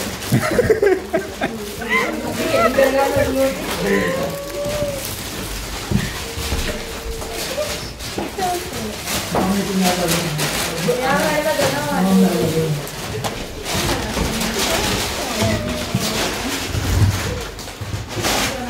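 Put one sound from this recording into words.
Foil wrapping paper crinkles and rustles in hands.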